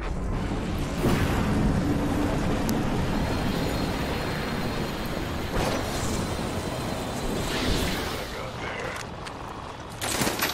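Wind rushes past during a fast glide through the air.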